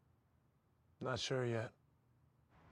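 A second man speaks into a phone.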